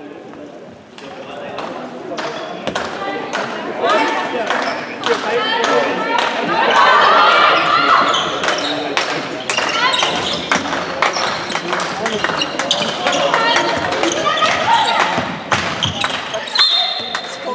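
Spectators cheer and shout in an echoing hall.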